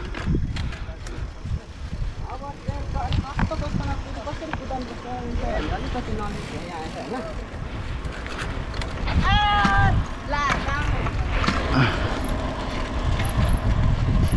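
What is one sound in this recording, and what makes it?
Wind buffets loudly outdoors as a bicycle speeds downhill.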